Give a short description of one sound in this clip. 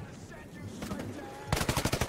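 Bullets splash into water.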